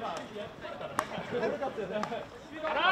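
A hockey stick sharply strikes a ball.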